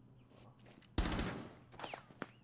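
A gun fires a short, loud burst.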